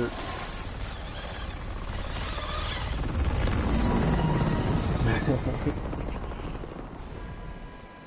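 A helicopter's rotor thumps and roars overhead.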